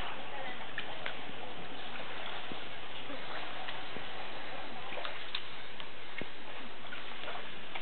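Young women talk and laugh nearby outdoors.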